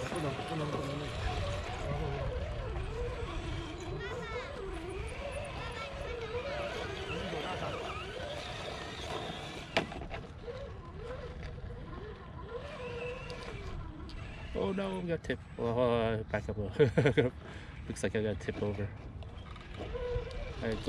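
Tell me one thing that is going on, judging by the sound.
Small electric motors whine, rising and falling as toy trucks crawl over rock.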